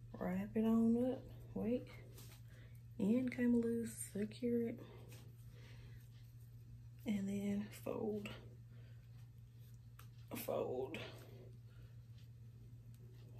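Plastic hair rollers rustle and click in hair.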